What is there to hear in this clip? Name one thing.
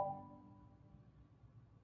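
A pipe organ chord rings out and dies away in a reverberant hall.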